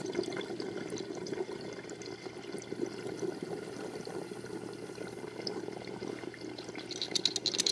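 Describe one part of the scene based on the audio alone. Water bubbles and gurgles steadily inside a glass water pipe.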